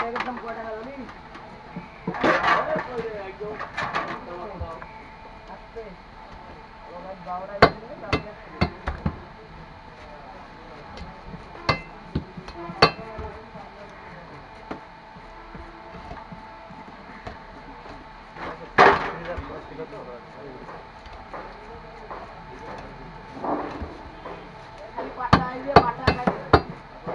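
A man chops fish on a fixed blade, with sharp knocks and thuds.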